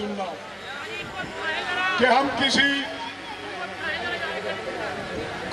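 An elderly man speaks forcefully into a microphone over loudspeakers, outdoors.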